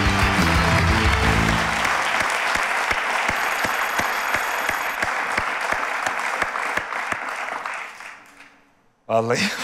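A studio audience applauds loudly, then fades away.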